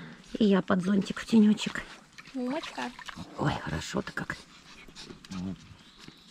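Water splashes in a small paddling pool.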